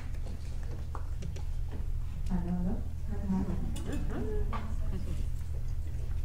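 A young woman speaks quietly through a microphone.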